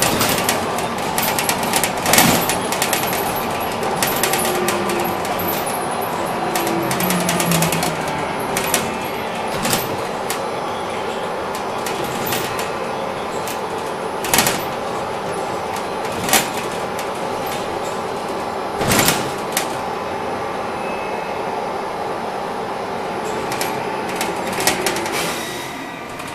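The bus body rattles and knocks over bumps.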